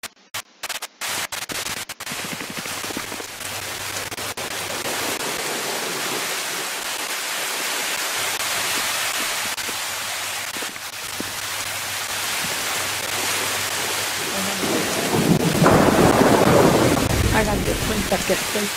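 Water splashes and sloshes steadily as someone wades through it.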